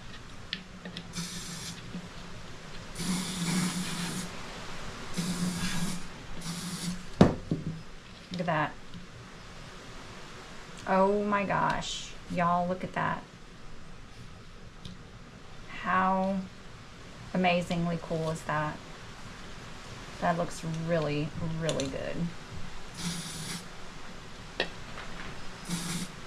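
An aerosol can sprays in short hissing bursts.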